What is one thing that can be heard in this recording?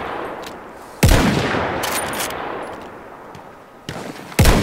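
A rifle fires loud shots that boom and echo away.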